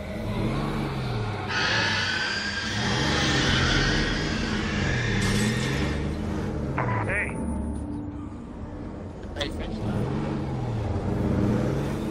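A van engine hums and revs as the van drives along.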